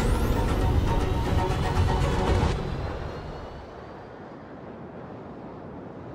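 A large aircraft roars loudly overhead, then fades away.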